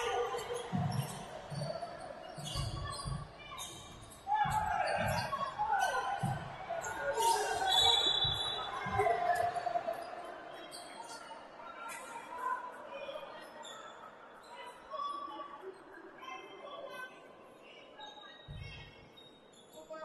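A basketball bounces on a wooden court with deep thumps.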